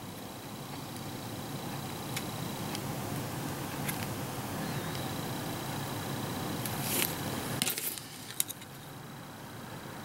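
Small plastic parts click and tap against each other.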